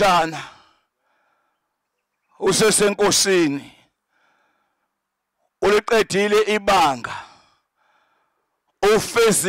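A man speaks with emotion into a microphone over a loudspeaker, in short bursts with pauses.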